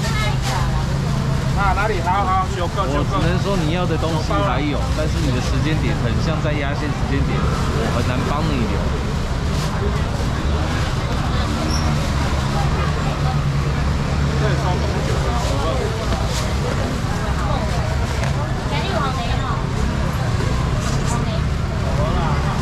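A middle-aged man calls out loudly to customers.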